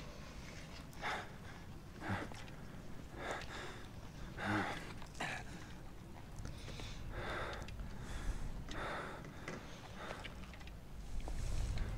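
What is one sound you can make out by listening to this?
A man breathes heavily and grunts with effort, close by.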